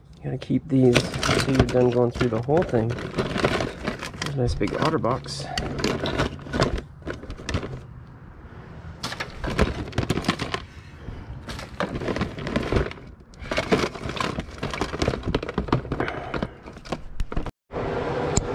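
Cables rustle and clatter against a plastic bin.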